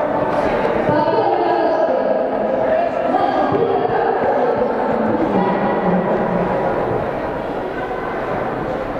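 A crowd of children and adults chatters and calls out in a large echoing hall.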